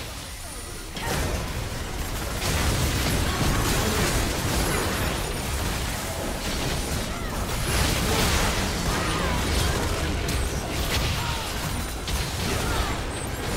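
Spell effects and hits crackle and boom in a game battle.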